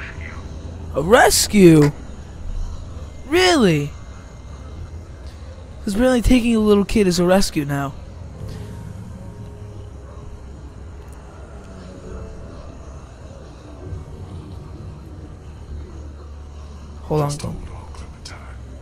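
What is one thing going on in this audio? A man speaks tensely and anxiously, close by.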